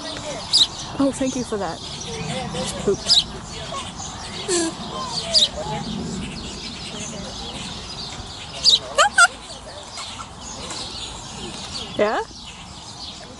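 A lemur calls out close by with short, wailing cries that rise and fall.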